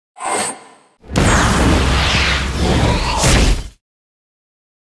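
A magical spell blasts with a loud whooshing roar.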